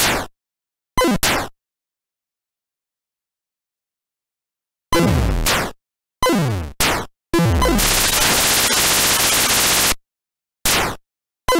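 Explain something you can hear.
Electronic laser zaps fire in short, falling bursts.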